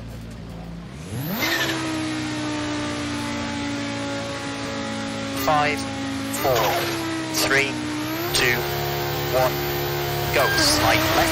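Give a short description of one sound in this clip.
A car engine revs up sharply several times.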